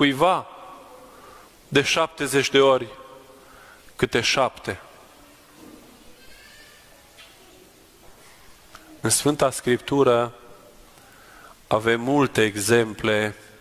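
A man chants in bursts in a large echoing hall.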